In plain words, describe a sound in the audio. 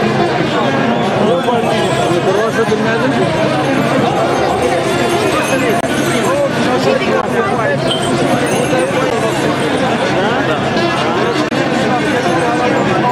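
A large crowd chatters and calls out all around, close by, outdoors.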